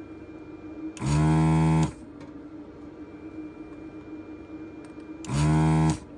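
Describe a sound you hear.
A desoldering pump buzzes loudly in short bursts.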